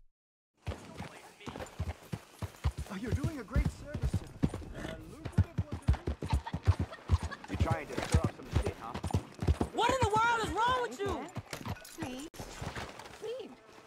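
A horse's hooves clop steadily on a dirt road.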